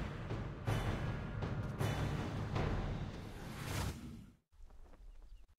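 A magical portal roars with a loud rushing whoosh.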